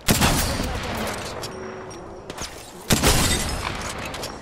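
Gunshots bang loudly in sharp bursts.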